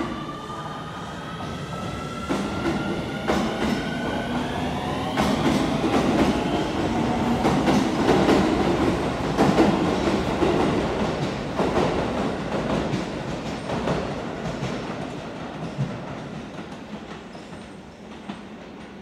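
Train wheels rumble and clatter on the rails and slowly fade.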